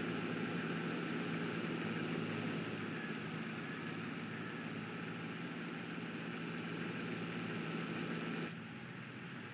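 Grain pours with a rushing hiss into a trailer.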